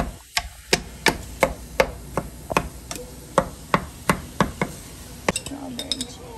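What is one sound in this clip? A wooden spoon knocks and scrapes against a metal pan in a steady rhythm.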